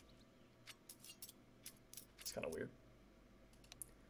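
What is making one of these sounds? A knife swishes as it is flipped in the hand.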